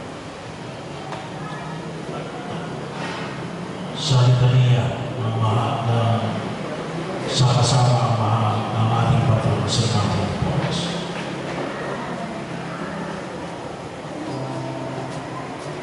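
A woman reads aloud through a microphone and loudspeaker, echoing outdoors.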